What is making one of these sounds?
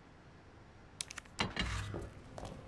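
A heavy storage box lid creaks and thuds.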